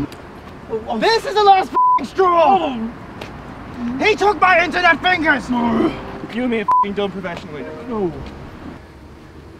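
A young man shouts with animation outdoors.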